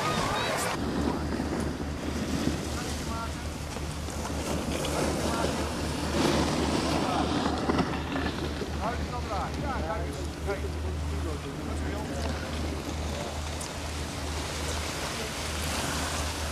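A snowboard scrapes over snow.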